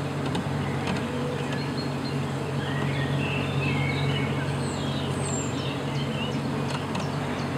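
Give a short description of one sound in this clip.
A dense swarm of bees buzzes and hums steadily close by.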